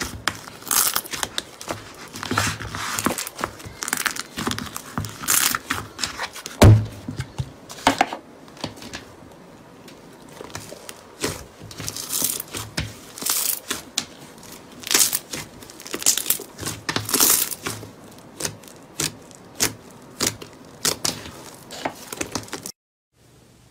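Soft slime squishes and squelches under kneading fingers.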